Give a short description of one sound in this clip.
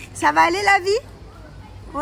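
A young child shouts excitedly.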